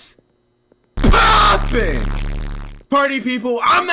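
A young man screams loudly into a headset microphone.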